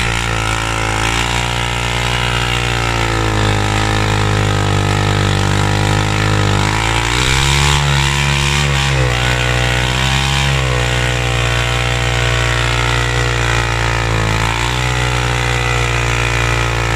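A motorcycle engine roars loudly at high revs, rising and falling.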